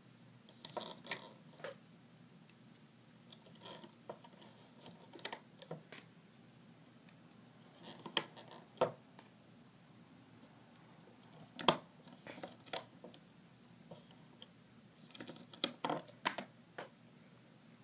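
Plastic pieces click and tap as fingers work rubber bands on a loom.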